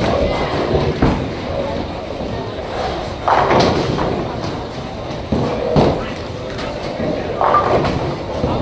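Bowling pins crash and clatter nearby.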